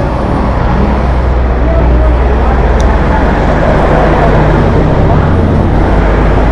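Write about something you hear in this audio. A motorcycle engine idles with a loud, steady rumble close by.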